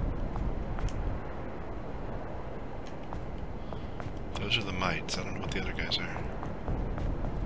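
Footsteps thud steadily on a stone floor.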